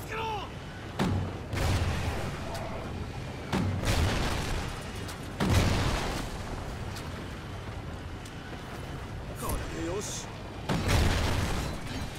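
A shotgun fires loud booming blasts in short bursts.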